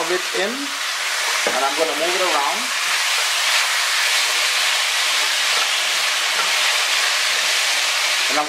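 A spoon scrapes and stirs food in a pot.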